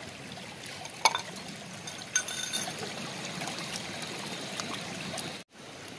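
A small bowl scoops and splashes water.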